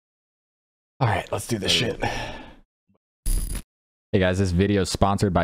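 A young man speaks with animation, close into a microphone.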